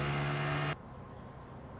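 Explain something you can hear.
A steamboat whistle blows with a deep, steady tone.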